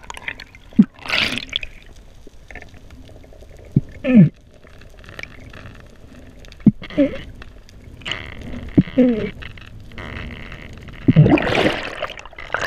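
Air bubbles rush and gurgle close by underwater.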